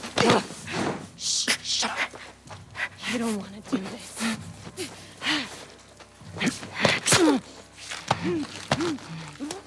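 A man grunts and chokes while being grabbed in a struggle.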